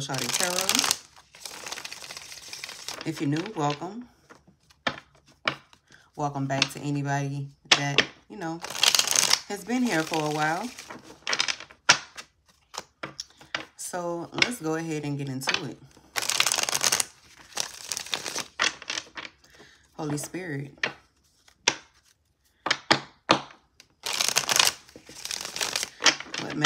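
Playing cards riffle together in quick, fluttering bursts.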